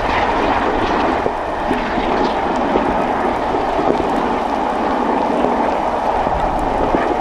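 A steam train chugs steadily in the distance.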